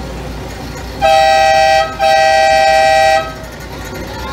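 A train horn sounds loudly in two long blasts.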